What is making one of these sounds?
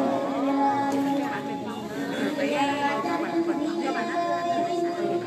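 A man sings into a microphone through loudspeakers, echoing in a large space.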